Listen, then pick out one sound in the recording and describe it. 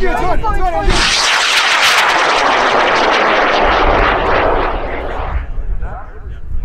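A rocket launches with a loud, rushing roar that fades as it climbs.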